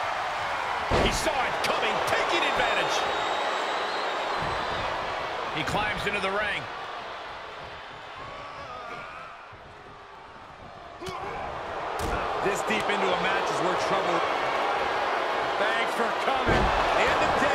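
A body slams down hard on a wrestling ring mat.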